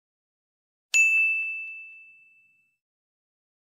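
A small bell chimes once and rings out.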